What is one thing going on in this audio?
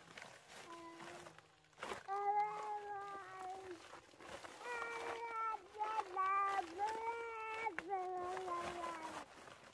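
Plastic sacks rustle and crinkle as they are handled.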